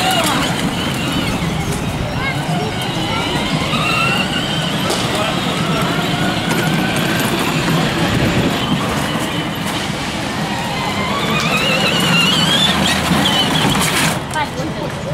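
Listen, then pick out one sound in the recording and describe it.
A children's electric toy car hums as it drives.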